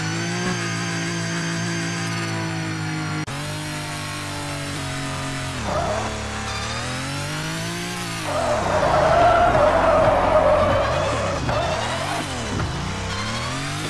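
A car engine hums and revs, rising and falling in pitch.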